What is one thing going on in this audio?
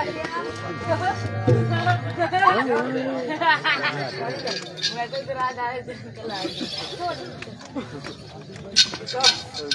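Several men talk loudly close by in a crowded, noisy space.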